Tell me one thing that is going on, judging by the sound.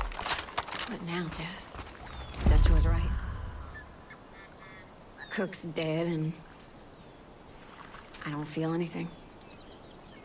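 A young woman speaks quietly and sadly nearby.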